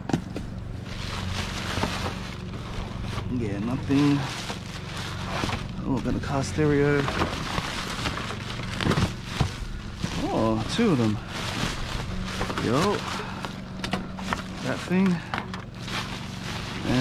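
A plastic bag rustles and crinkles as hands rummage through it.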